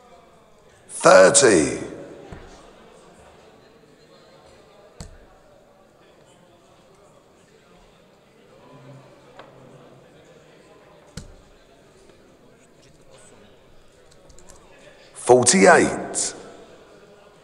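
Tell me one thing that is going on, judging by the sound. A man calls out loudly in a large hall.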